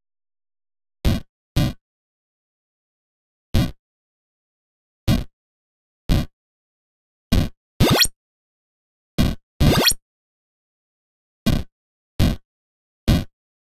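Short electronic game sound effects blip as falling blocks land.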